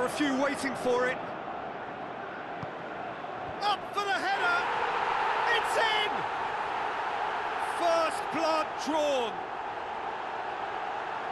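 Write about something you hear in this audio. A stadium crowd roars and cheers steadily.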